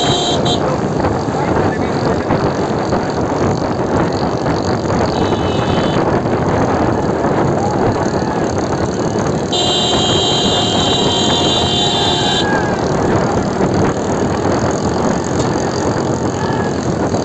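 Motorcycle engines drone close by.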